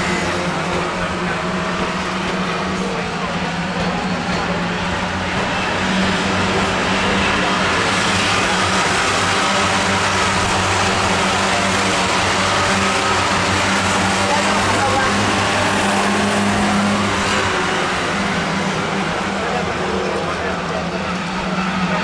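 Several racing car engines roar and rev loudly as cars race around a track.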